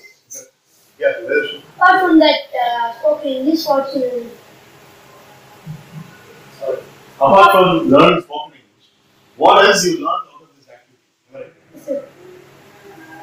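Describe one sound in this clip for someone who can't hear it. A young man speaks in short bursts with pauses.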